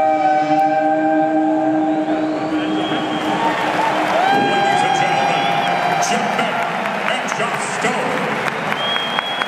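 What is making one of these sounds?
An electric guitar plays through loudspeakers.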